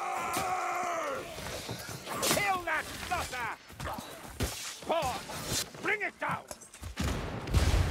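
Blades clash and strike in a close fight.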